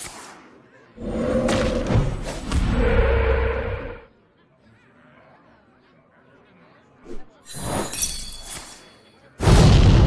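Game sound effects whoosh and clash as cards are played.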